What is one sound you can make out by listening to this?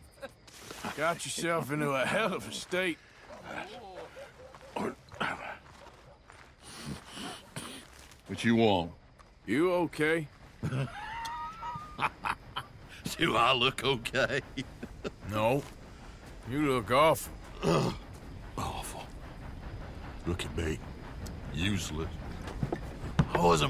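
A man speaks in a low, gruff voice.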